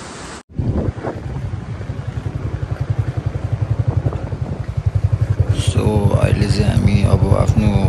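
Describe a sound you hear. Tyres crunch over a rough gravel road.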